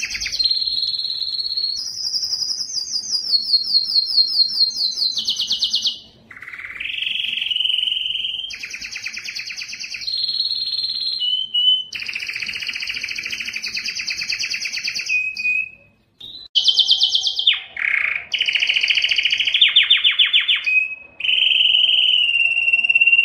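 Canaries sing loud, rapid trilling songs close by.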